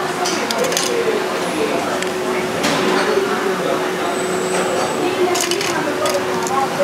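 Ceramic spoons clink against each other in a metal bowl.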